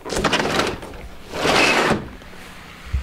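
A sliding glass door rumbles open along its track.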